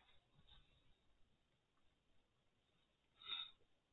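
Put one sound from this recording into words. Cloth rustles as a man drapes a shawl over his head.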